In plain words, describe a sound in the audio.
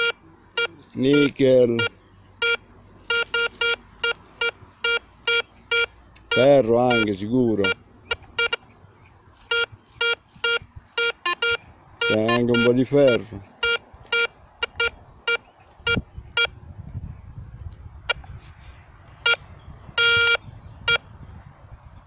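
A metal detector gives short, repeated beeps.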